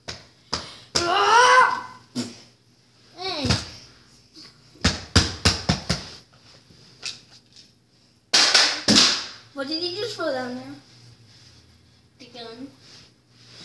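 A young woman screams and cries out loudly nearby.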